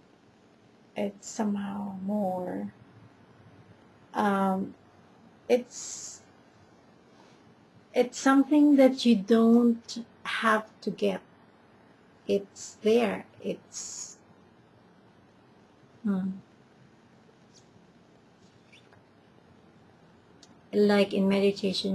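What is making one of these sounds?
A middle-aged woman speaks close to the microphone in short bursts, with pauses between.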